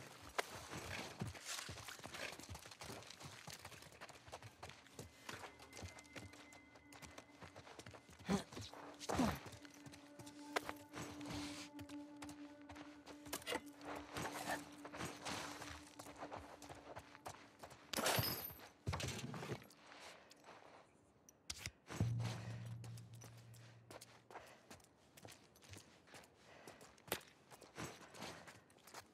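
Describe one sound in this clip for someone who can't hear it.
Soft footsteps pad across a wooden floor.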